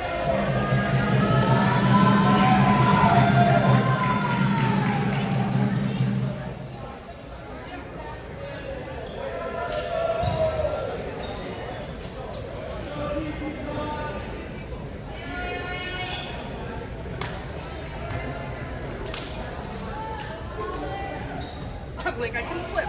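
Young women chatter and call out in a large echoing gym.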